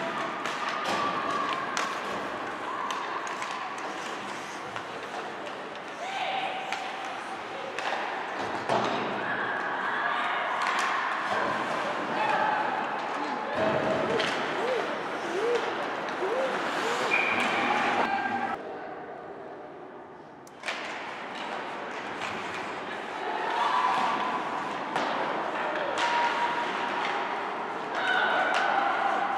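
Skates scrape and hiss across ice in an echoing rink.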